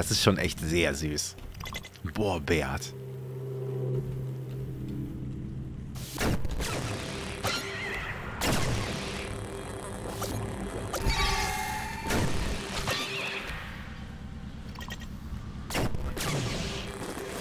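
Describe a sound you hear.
A man talks into a microphone with animation, close up.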